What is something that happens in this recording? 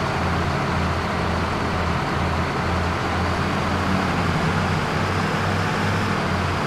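A bus engine hums steadily as it drives along.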